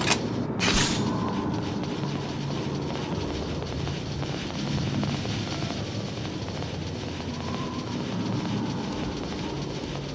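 Footsteps run across a stone floor.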